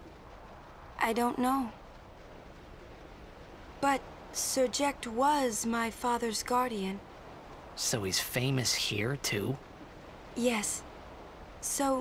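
A young woman speaks softly and gently in reply.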